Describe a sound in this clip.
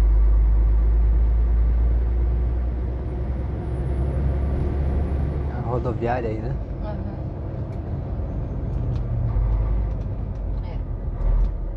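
A vehicle engine hums steadily from inside a moving car.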